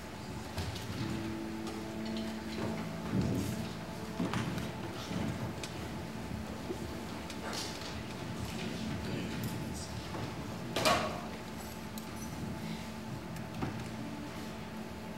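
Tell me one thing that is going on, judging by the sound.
An electric guitar plays single notes and short chords through an amplifier.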